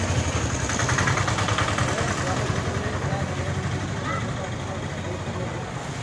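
A motorcycle engine putters past.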